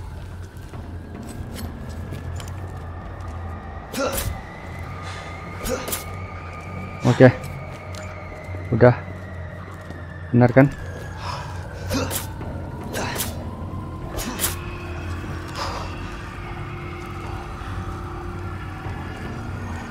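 A young man talks quietly into a headset microphone.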